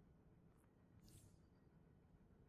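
A short soft whoosh sounds as an item snaps into place.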